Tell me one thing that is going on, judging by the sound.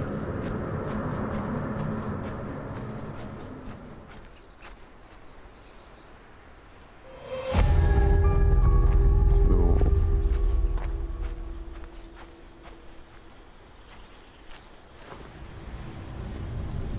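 Footsteps tread on grass and dirt.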